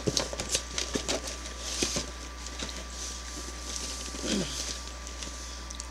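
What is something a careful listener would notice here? Cardboard boxes knock and rustle as they are handled.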